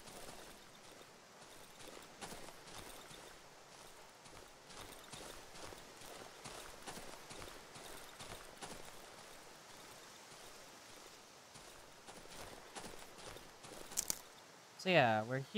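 Footsteps crunch softly over leaves and twigs.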